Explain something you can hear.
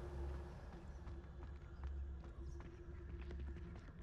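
An iron gate creaks open.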